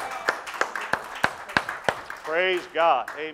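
Hands clap in quick applause.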